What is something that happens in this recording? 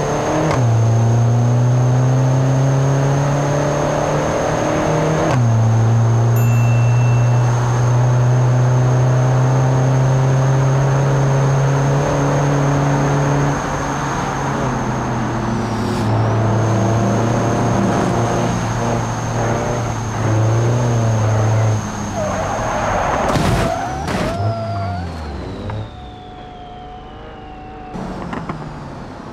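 A car engine roars steadily at high revs, shifting gears now and then.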